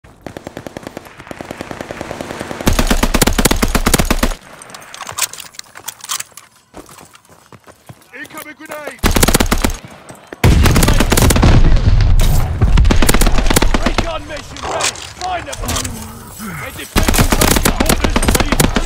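A machine gun fires in rapid, loud bursts.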